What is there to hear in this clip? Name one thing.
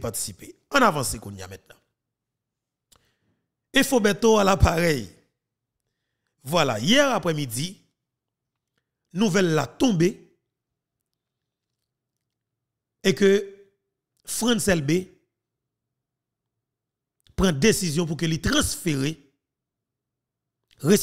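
A man speaks into a close microphone in short, animated bursts with pauses between.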